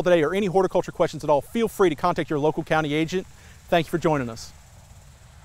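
A man speaks calmly and clearly into a microphone close by.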